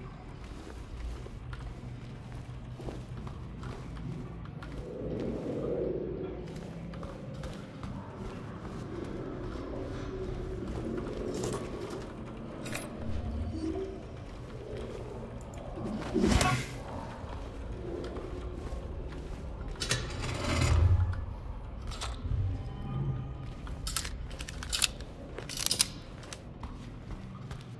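Keyboard keys click and clack under quick presses.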